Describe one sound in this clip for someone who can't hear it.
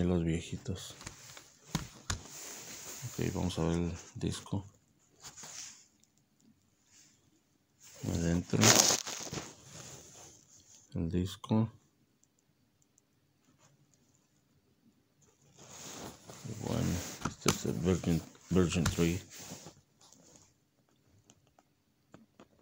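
A plastic disc case clicks and rattles in a hand.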